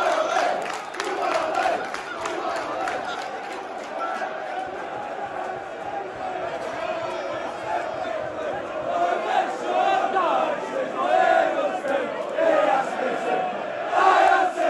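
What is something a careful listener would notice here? A large crowd cheers and shouts loudly in an open stadium.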